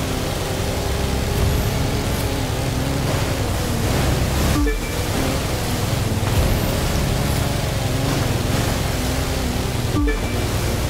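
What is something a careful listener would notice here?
A boat engine roars steadily at high speed.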